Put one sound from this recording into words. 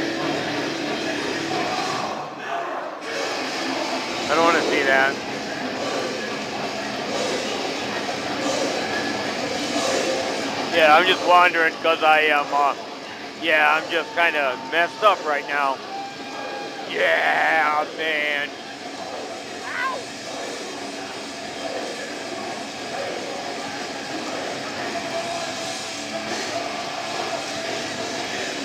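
A band plays music through loudspeakers.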